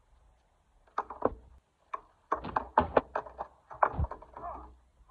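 A skateboard is slammed against concrete.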